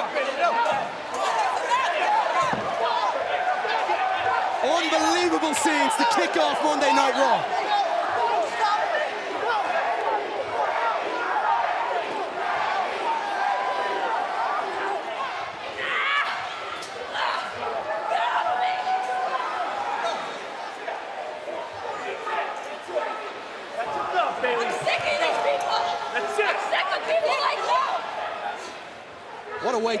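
Men and women shout and grunt while scuffling up close.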